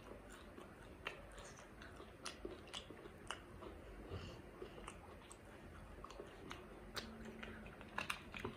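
A woman chews crunchy fried food loudly and close up.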